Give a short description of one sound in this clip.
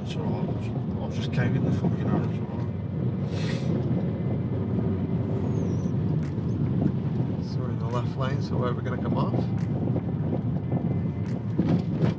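A car engine hums steadily at low speed.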